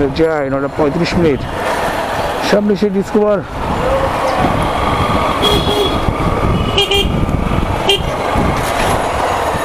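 Traffic rumbles along a busy street.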